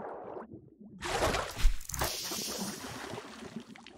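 A stream of water pours down and splashes loudly.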